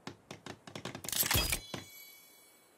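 A wooden stick thuds into the ground.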